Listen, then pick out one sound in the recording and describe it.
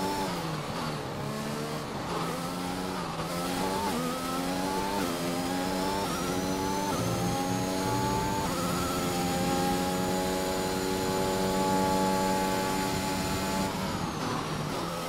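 A racing car engine screams and climbs through quick gear changes.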